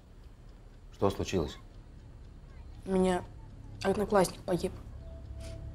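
A boy speaks softly.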